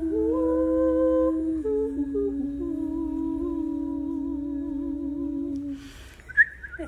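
Two young women sing together in harmony over an online call.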